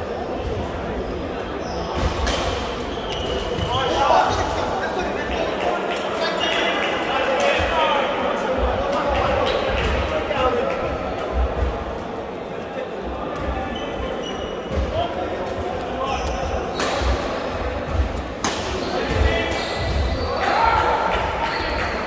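Men call out and chatter across a large echoing hall.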